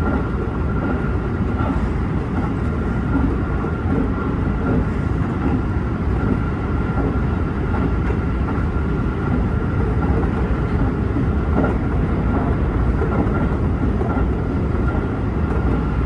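A train rumbles steadily along the tracks from inside the cab.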